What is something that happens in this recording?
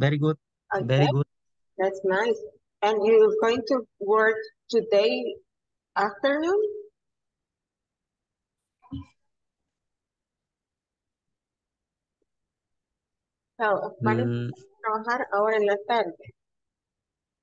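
A woman speaks clearly through an online call, in short phrases with pauses.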